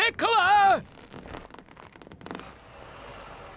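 A rubber tyre scrapes and thumps on concrete.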